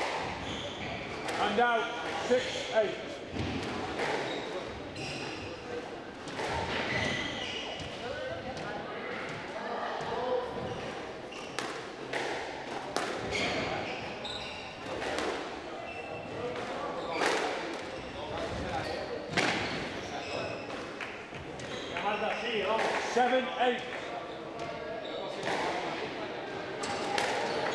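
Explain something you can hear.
A squash ball smacks off the walls in a quick rally, echoing in a hall.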